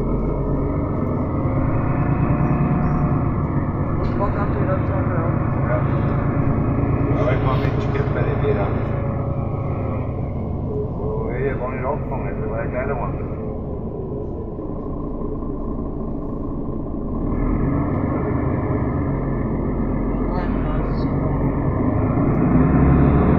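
Rain patters on the bus window.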